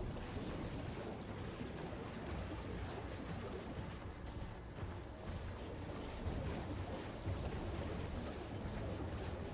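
Horse hooves thud steadily at a gallop.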